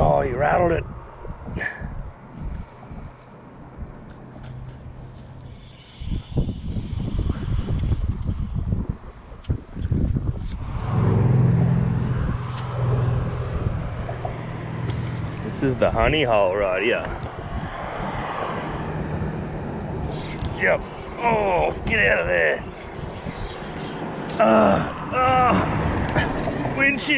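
A fishing reel whirs and clicks as its handle is cranked.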